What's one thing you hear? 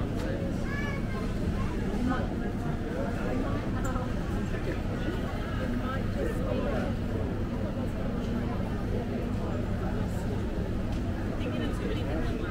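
A crowd of men and women chatter nearby in a large echoing hall.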